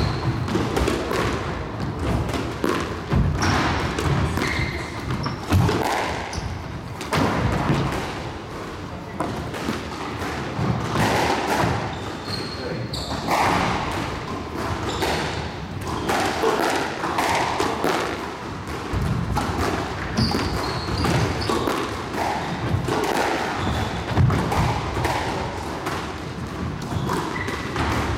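A squash ball smacks against the walls and racquets, echoing in a large hall.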